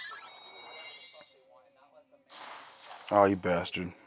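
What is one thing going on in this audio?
Game battle effects whoosh and sparkle.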